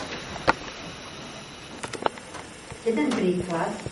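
An older woman reads aloud calmly into the room.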